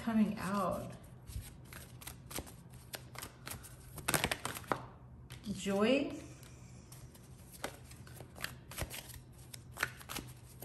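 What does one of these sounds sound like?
Playing cards riffle and flick as a deck is shuffled.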